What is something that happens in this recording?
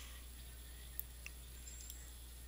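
A short electronic chime rings out once.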